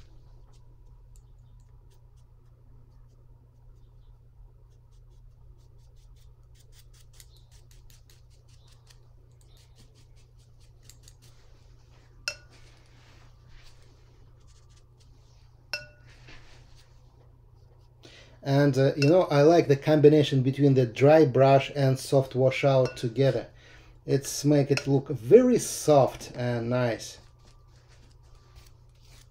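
A brush dabs and swishes softly on paper.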